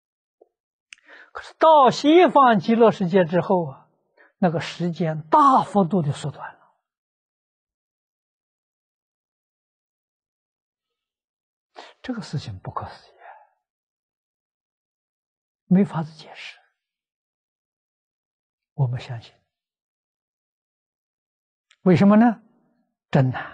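An elderly man speaks calmly in short phrases with long pauses, close to a microphone.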